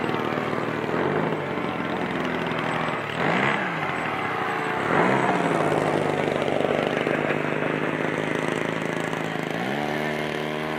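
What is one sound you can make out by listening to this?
A model jet engine whines loudly overhead, its pitch swooping as it passes by.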